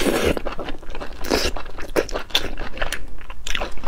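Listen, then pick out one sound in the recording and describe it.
A young woman slurps and sucks meat from a shell close to a microphone.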